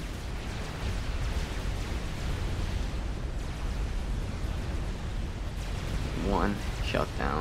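Explosions rumble and boom in a battle.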